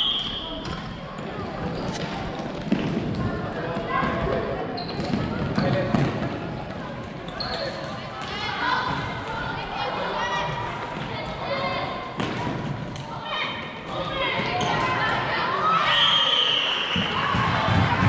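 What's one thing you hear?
Sneakers squeak sharply on the hall floor.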